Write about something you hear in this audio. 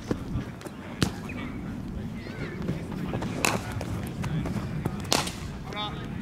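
A cricket bat strikes a ball with a sharp crack.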